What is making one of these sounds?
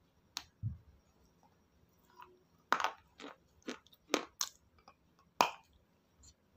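A woman bites off a crisp piece with a loud snap.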